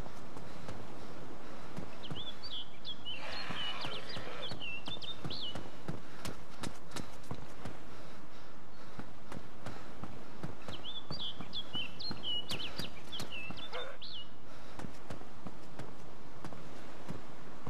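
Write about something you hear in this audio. Footsteps tap on hard floors and stairs.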